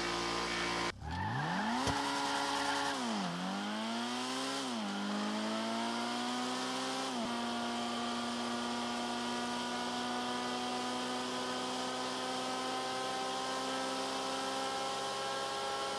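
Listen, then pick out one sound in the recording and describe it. A racing car engine revs hard, climbing through its gears, then holds a high steady whine.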